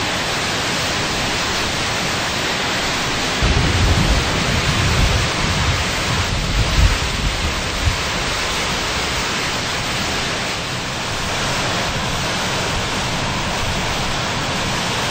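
Heavy rain lashes down in the wind.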